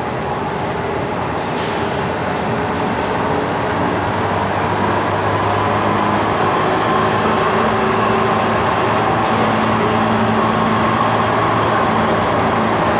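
A subway train rumbles and rattles steadily along the tracks.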